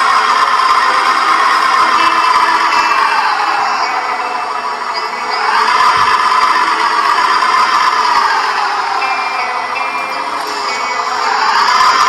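An excavator engine hums steadily, its pitch slowly rising and falling.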